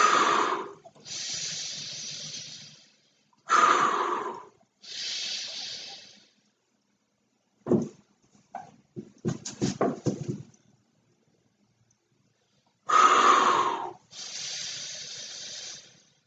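A man breathes in sharply between puffs.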